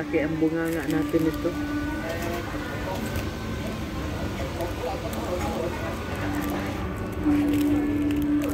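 Paper wrapping crinkles in a woman's hands.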